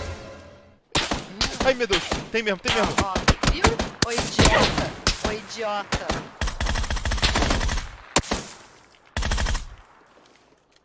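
Rifle shots crack in rapid bursts.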